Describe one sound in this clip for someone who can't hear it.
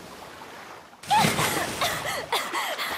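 Water splashes loudly as something bursts from the sea.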